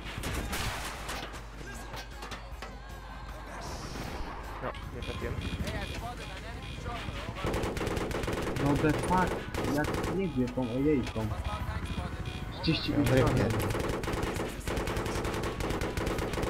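A heavy cannon fires in quick repeated bursts.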